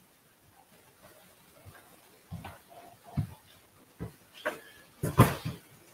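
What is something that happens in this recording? Footsteps approach on a wooden floor.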